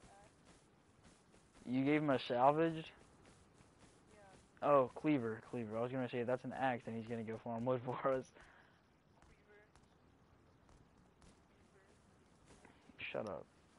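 Footsteps tread steadily over grass and gravel.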